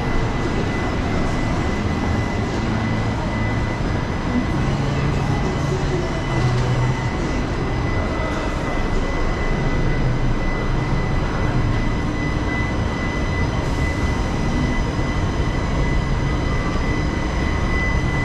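A low murmur of voices echoes through a large indoor hall.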